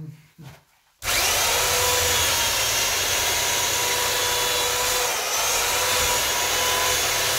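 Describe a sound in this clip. A power tool whines loudly and steadily as it cuts into a wall.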